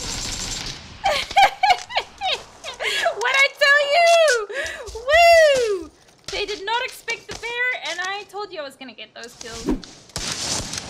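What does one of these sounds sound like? A young woman talks excitedly into a microphone, her voice rising and falling.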